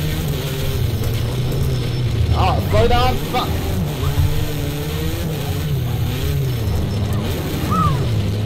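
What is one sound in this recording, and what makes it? A racing car engine drones and revs up and down steadily.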